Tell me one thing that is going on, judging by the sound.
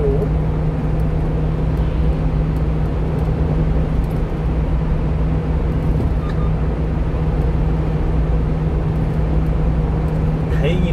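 Engine hum and road roar fill the cab of a small diesel truck driving through a tunnel.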